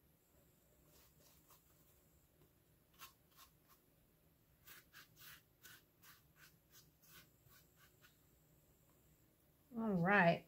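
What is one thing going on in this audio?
A paintbrush dabs and brushes softly against a surface.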